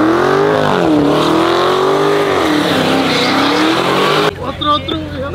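A car engine roars loudly as it revs and spins its tyres.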